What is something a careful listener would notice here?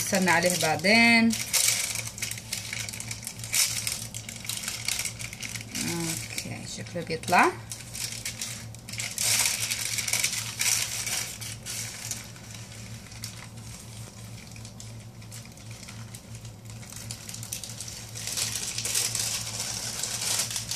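Paper rustles and crinkles as it is peeled away from a soft surface.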